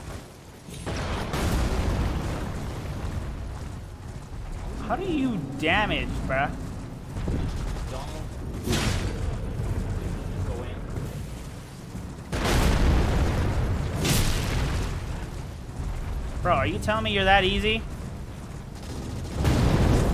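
A giant's heavy footsteps thud and boom close by.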